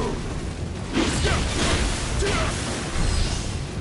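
A sword strikes a creature with sharp slashing hits.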